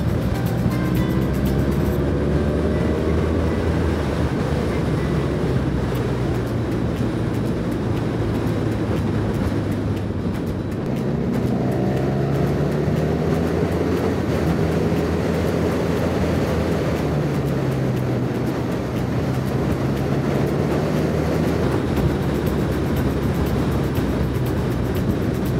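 A motorcycle engine hums steadily up close, rising and falling in pitch as it speeds up and slows down.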